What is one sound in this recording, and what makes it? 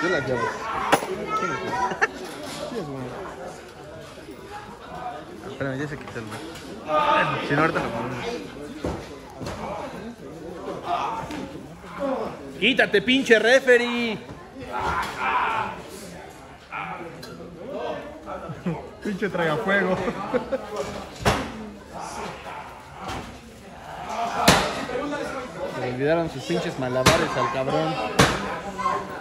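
Wrestlers thud heavily onto a ring mat.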